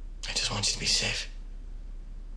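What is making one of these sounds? A man speaks quietly and tensely, close by.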